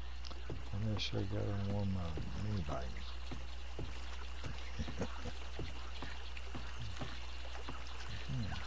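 Footsteps tread steadily on a hard paved path.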